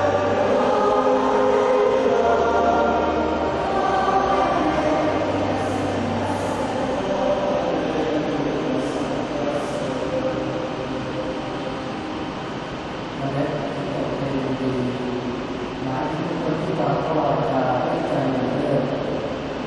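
A choir sings slowly in a large echoing space.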